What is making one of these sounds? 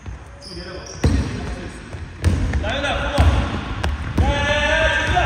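A basketball bounces on a hard wooden floor in a large echoing hall.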